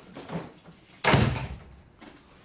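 A door slams shut.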